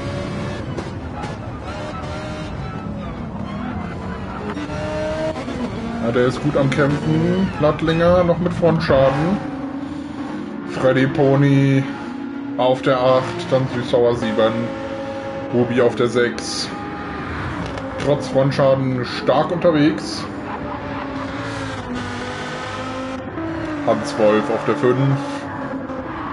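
A race car engine roars and revs as it speeds along.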